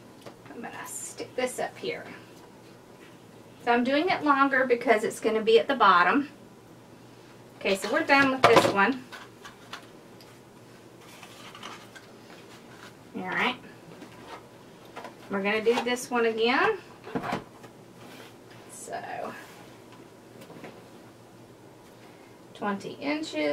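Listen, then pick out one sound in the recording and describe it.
A woman talks calmly and clearly close by.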